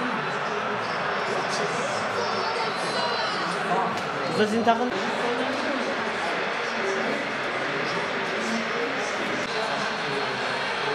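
A crowd of teenage boys murmurs and chatters.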